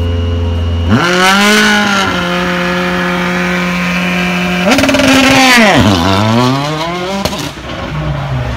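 A rally car engine revs hard, rising and falling in pitch.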